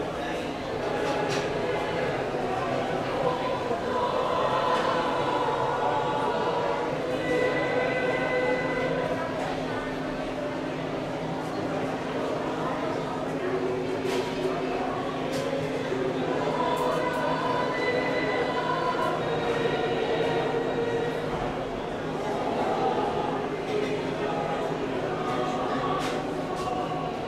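A crowd of men and women murmurs quietly nearby.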